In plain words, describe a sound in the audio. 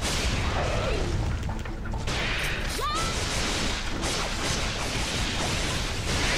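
Blades clash and slash in a fast fight.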